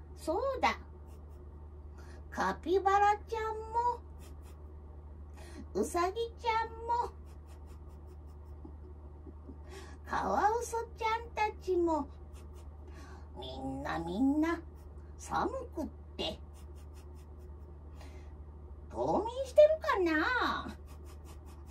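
A young woman speaks in playful puppet voices, in short bursts, close by.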